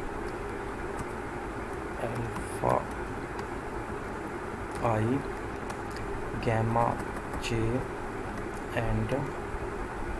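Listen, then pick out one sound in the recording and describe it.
Keys click on a computer keyboard.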